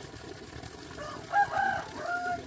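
A hen clucks nearby.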